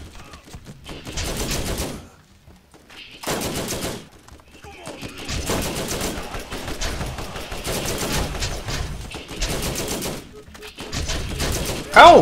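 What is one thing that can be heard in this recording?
Gunfire bursts from a video game.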